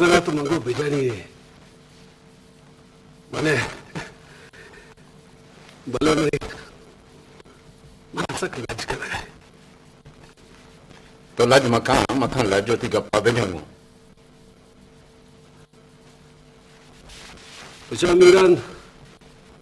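A man speaks in short, calm phrases close by.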